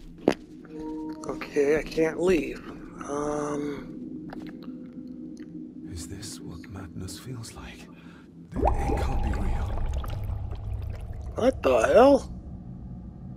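A man speaks quietly and uneasily to himself.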